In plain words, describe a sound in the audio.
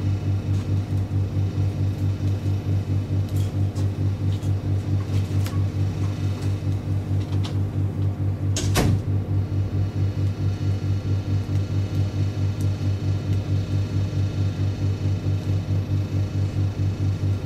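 A man taps keys on a laptop.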